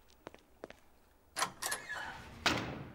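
A metal latch clanks loudly.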